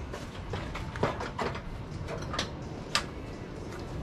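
Metal parts clank and knock.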